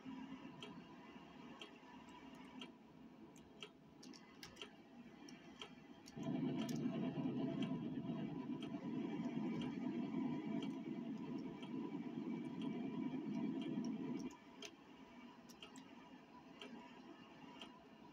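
A truck engine rumbles steadily, growing louder for a while before dropping back.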